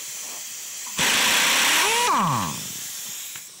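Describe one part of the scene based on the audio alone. An air impact wrench whirs briefly.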